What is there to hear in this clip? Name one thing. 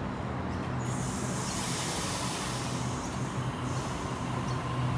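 Air hisses loudly from a train.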